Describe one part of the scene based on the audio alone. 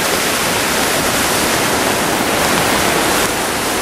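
A car drives through deep water, splashing loudly.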